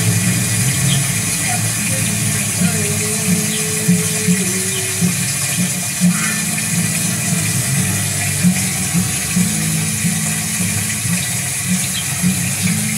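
A fountain splashes steadily into a pool.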